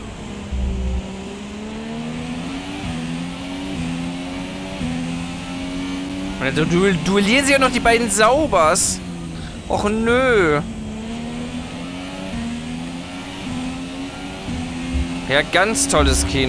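A racing car engine roars steadily, climbing in pitch and dropping back with each gear change.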